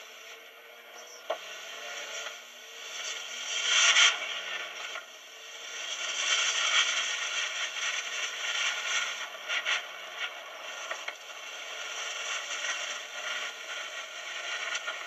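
A car engine hums and revs as the car drives at speed.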